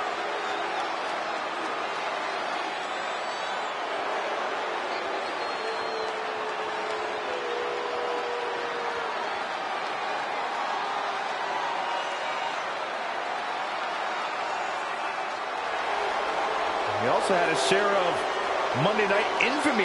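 A large crowd cheers steadily in an echoing arena.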